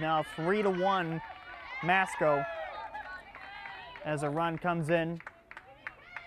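Young women cheer and call out from close by.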